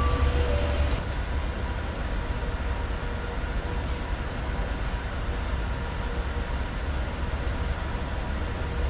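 Jet engines hum more softly from inside a cockpit.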